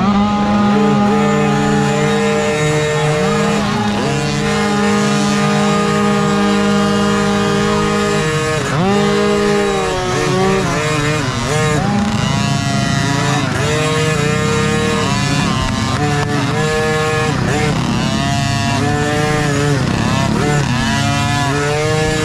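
A dirt bike engine revs and sputters close by.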